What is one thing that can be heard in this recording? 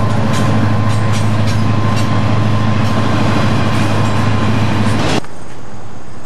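Freight boxcars rumble and clatter past on the rails.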